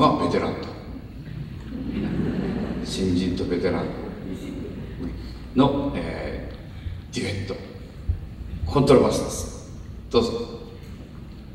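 An elderly man speaks calmly into a microphone over loudspeakers in a large hall.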